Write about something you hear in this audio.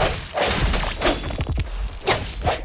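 A magic blast bursts with a bright whoosh.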